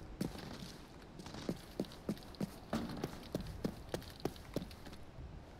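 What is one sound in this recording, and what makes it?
Footsteps crunch on the ground in a quick rhythm.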